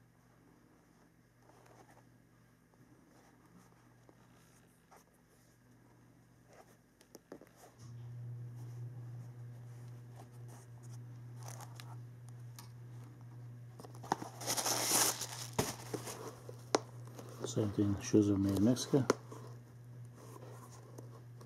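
Hands rub and tap a leather shoe with soft knocks.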